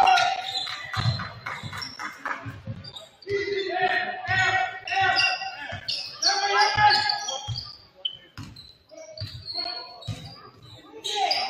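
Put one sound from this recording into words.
A basketball bounces repeatedly on a hardwood floor.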